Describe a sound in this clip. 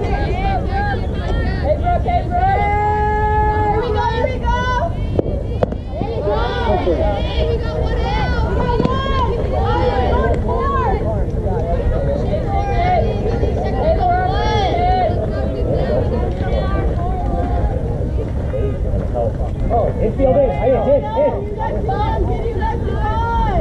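Young women shout and cheer from a distance.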